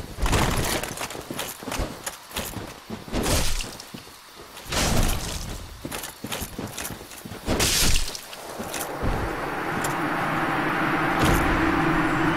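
Armoured footsteps crunch over grass.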